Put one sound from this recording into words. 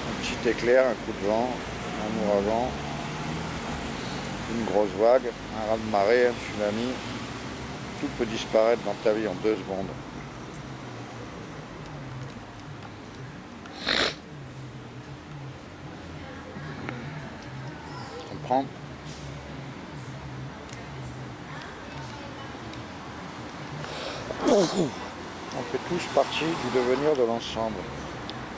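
An older man talks close to the microphone, in a lively, playful way.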